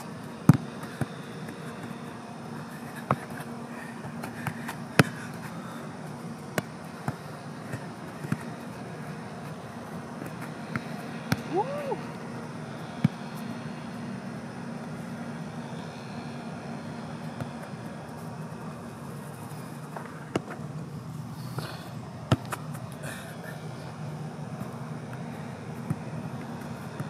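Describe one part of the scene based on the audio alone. A football thuds off a boot on artificial turf.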